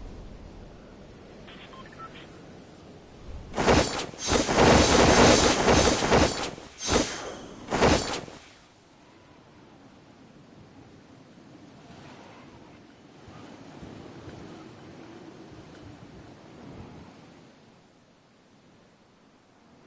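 Wind rushes steadily past during a long fall through the air.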